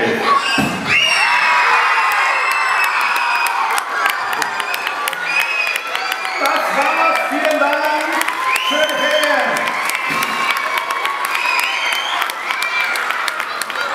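An audience cheers and whistles.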